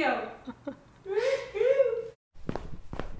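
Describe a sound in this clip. A woman laughs softly.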